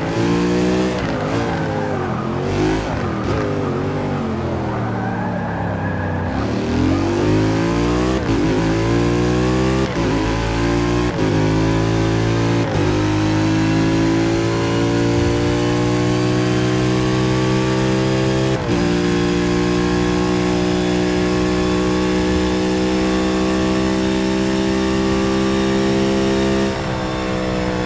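A racing car engine roars loudly, rising and falling in pitch as the gears shift.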